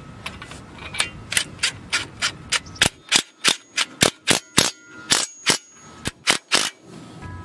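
An impact driver hammers rapidly in short bursts.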